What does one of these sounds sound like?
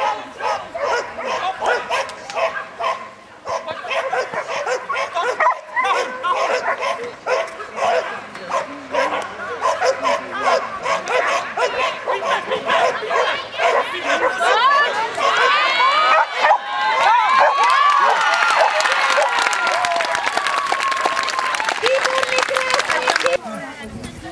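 A young man calls out commands to a dog.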